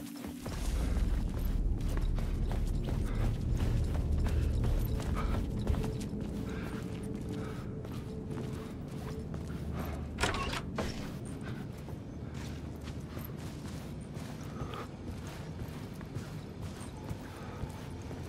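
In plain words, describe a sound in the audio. Slow footsteps walk across a hard floor.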